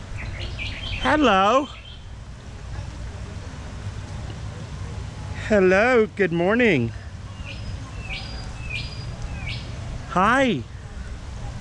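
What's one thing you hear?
A parrot squawks loudly and harshly, again and again.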